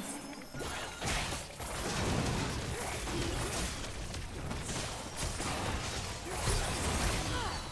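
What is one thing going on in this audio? Blows and impacts thud in a game battle.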